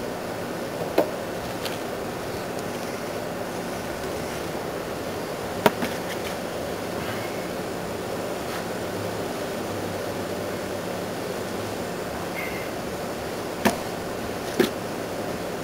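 A plastic pot knocks and thumps against the ground.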